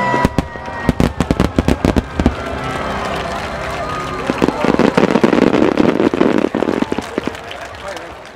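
Fireworks burst with rapid loud bangs.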